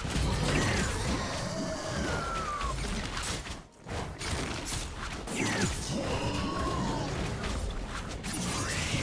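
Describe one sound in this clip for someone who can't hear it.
Game characters clash with magic blasts and hits.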